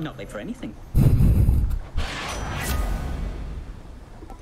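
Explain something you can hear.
A magical chime whooshes and rings out.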